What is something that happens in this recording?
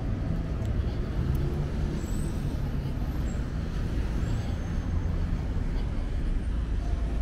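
Traffic rumbles steadily along a nearby road outdoors.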